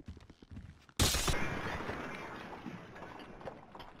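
Bulletproof glass cracks under gunfire.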